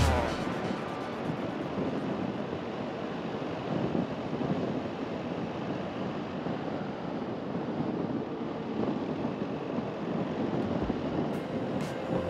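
Wind rushes past steadily as a vehicle drives along a winding road.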